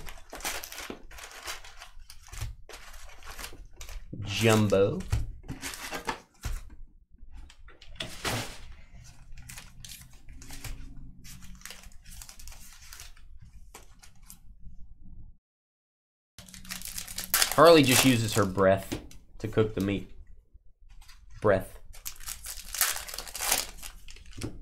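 Foil card packs crinkle and rustle as they are handled and stacked.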